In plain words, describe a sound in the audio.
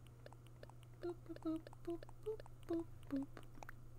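Short soft blips tick as a menu cursor moves.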